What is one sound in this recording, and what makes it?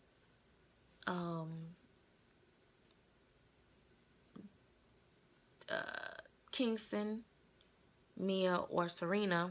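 A woman speaks softly and sweetly, close by.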